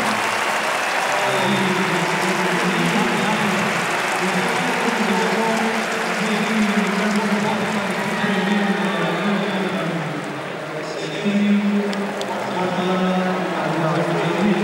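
A large crowd murmurs in an echoing arena.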